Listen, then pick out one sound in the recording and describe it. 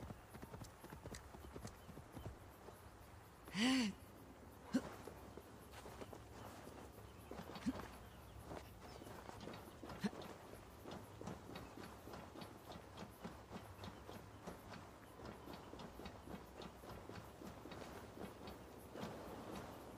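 Footsteps crunch on grass and rock.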